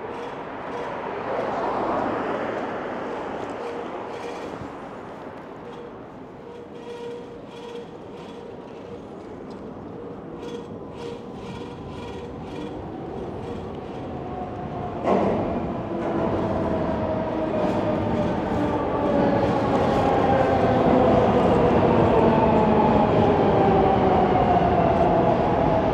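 Wind rushes past the rider of an electric bike.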